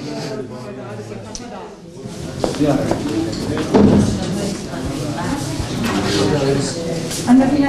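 A young woman sobs close by.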